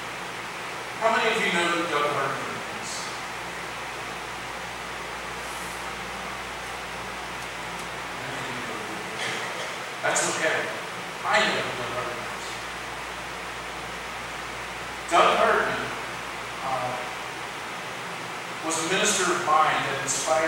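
A man speaks calmly in bursts with long pauses, in a room with some echo.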